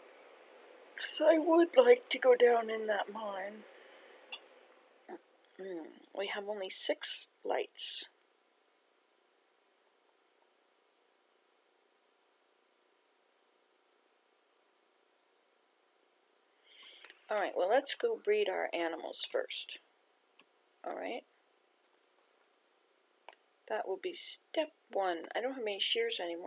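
An elderly woman talks calmly over a webcam microphone.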